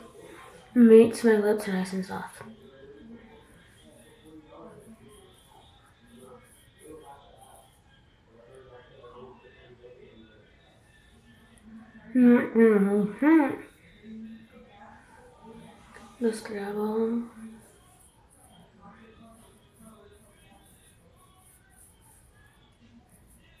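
A toothbrush scrubs teeth.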